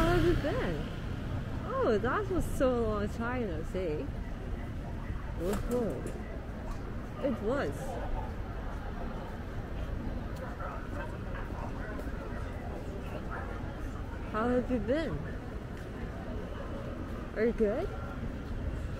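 Passersby talk nearby as they walk.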